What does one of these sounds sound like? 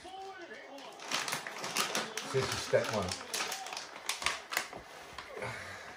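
A plastic treat bag crinkles and rustles.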